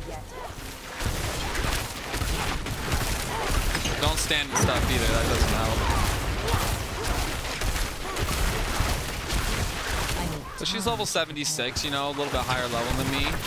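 Video game combat effects crash and thump throughout.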